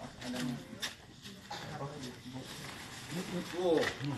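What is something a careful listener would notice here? Paper ballots rustle as they spill onto a table.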